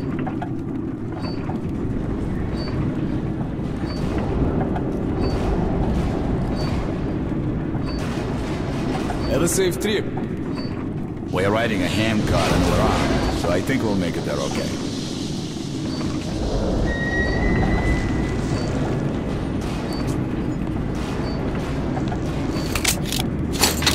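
A handcar rolls along rails with a steady low rumble.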